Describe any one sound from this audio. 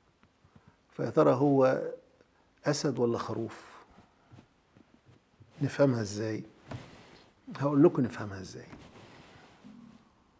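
An elderly man speaks calmly and slowly in short phrases, close to a microphone.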